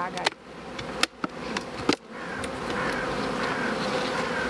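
A wooden hive box knocks and scrapes as it is lifted.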